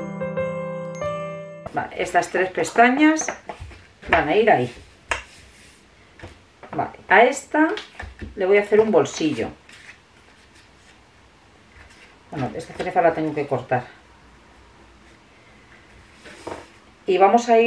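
Sheets of card rustle and slide as hands handle them.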